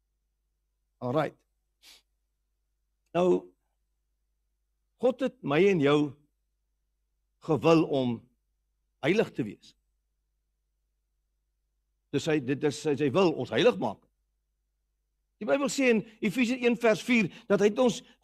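A middle-aged man speaks with animation in pauses through a microphone.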